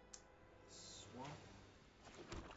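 A card whooshes as it is drawn into view.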